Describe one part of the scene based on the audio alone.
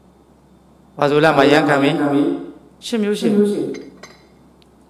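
An elderly man speaks calmly into a microphone, heard close.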